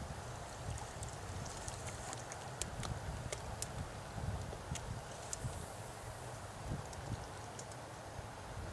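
A fishing reel clicks and whirs close by.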